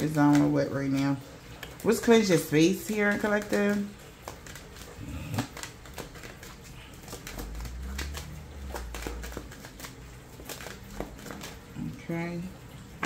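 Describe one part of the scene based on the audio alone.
Playing cards riffle and slap together as they are shuffled.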